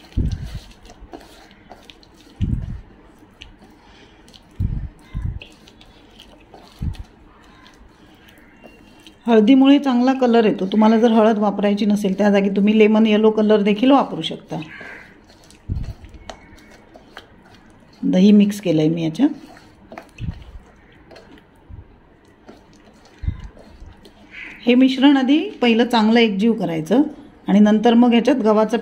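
Hands squish and knead a soft, wet mixture in a metal bowl.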